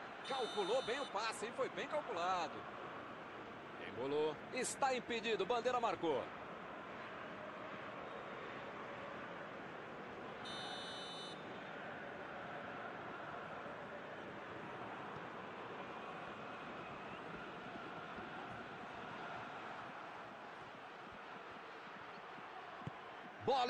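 A stadium crowd murmurs steadily in a large open space.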